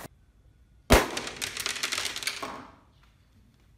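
A balloon pops with a sharp bang.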